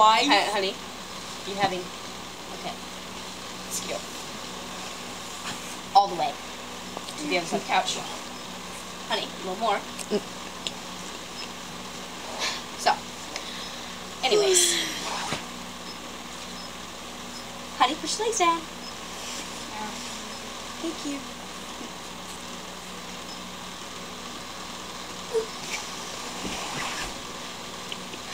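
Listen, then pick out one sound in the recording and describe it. A young boy talks and laughs close by.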